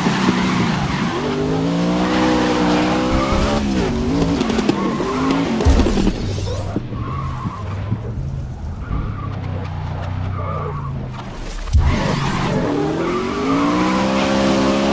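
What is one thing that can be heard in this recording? A race car engine roars, revving up and down.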